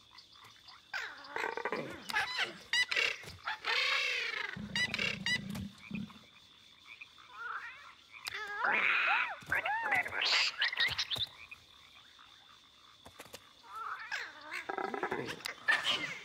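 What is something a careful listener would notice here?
Small cartoon creatures make squeaky, chirping cries in bursts.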